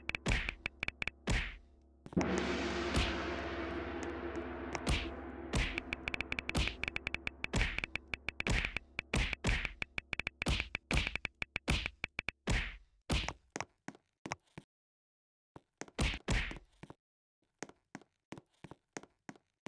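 Quick game sound effects click and pop rapidly.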